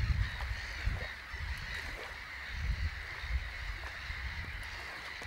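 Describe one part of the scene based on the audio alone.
Geese honk faintly as a flock flies overhead.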